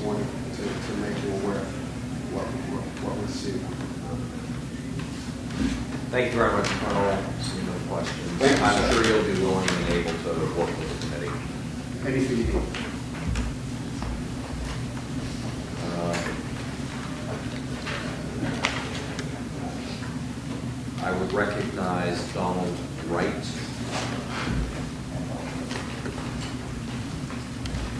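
A man speaks firmly into a microphone in an echoing room.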